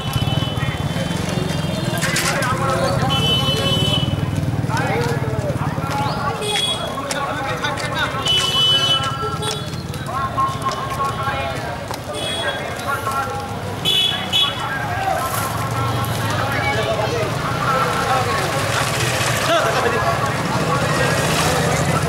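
A crowd of men talk and call out loudly nearby as they walk.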